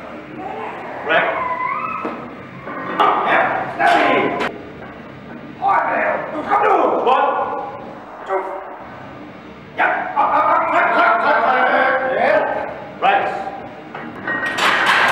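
Several men shout encouragement loudly in an echoing room.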